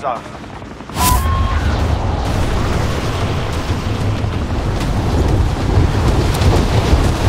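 Air rushes loudly past during a fast fall.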